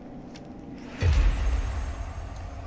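A heavy chest thumps down with a deep boom.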